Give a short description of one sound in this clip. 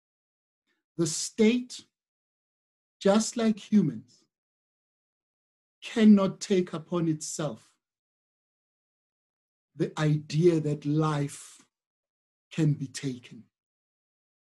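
A man speaks calmly in short phrases, close to a microphone, with pauses between them.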